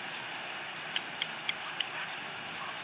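Osprey chicks give short, high peeps.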